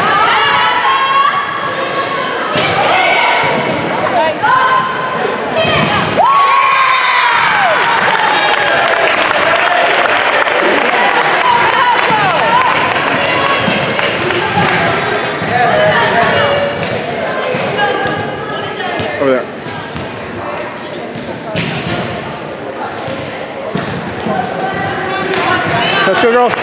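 Young women shout and cheer in an echoing gym.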